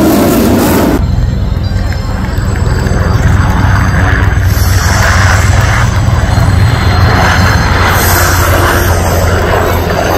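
A propeller plane drones steadily as it flies past.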